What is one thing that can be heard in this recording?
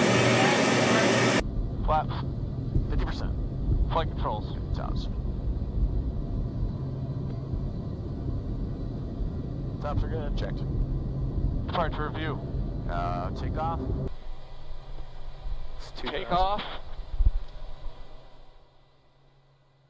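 Aircraft engines drone loudly and steadily inside a cabin.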